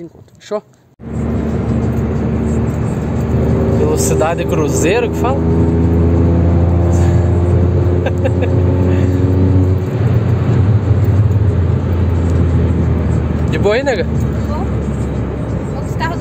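A car engine drones steadily and rises as it speeds up.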